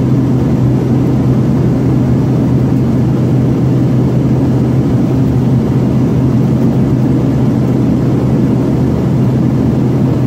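Twin jet engines of a regional jet roar steadily, heard from inside the cabin during the climb.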